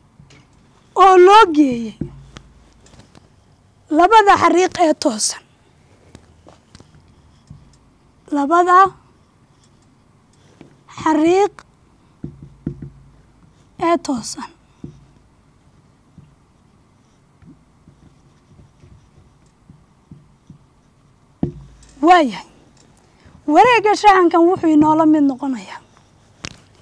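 A young woman speaks calmly in short phrases into a close microphone, with pauses between them.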